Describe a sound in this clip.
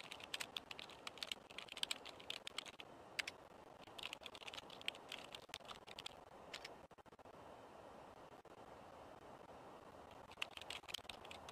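A keyboard clatters with quick typing.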